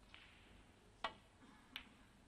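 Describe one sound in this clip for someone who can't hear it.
A snooker cue strikes the cue ball with a sharp tap.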